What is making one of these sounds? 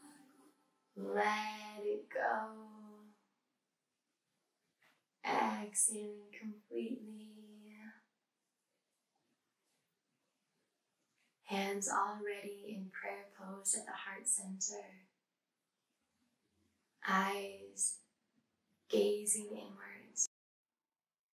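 A young woman speaks softly and calmly close by, in short phrases with pauses.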